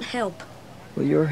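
A boy speaks calmly, close by.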